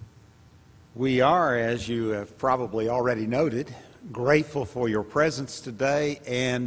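An elderly man speaks calmly through a microphone in a large hall.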